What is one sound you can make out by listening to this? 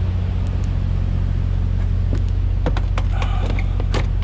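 A truck cab door opens with a click.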